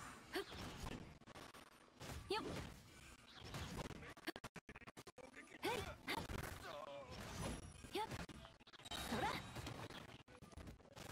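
Magic blasts burst with bright crackling and booms.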